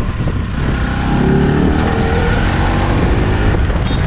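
A motorcycle engine revs up, rising in pitch.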